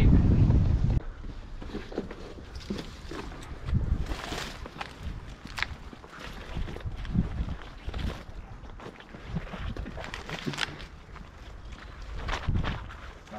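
Footsteps crunch through dry undergrowth.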